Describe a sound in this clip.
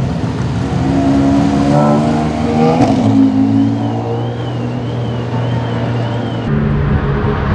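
A race car engine revs and roars as the car pulls away.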